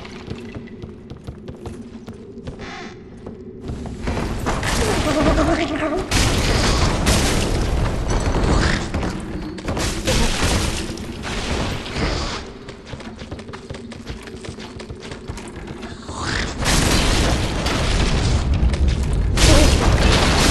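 Heavy footsteps clatter on wooden boards.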